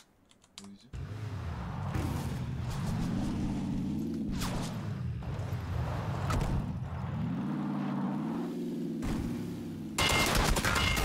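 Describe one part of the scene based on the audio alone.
A car engine revs and roars as the car drives over rough ground.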